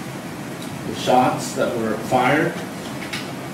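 A man speaks clearly and firmly.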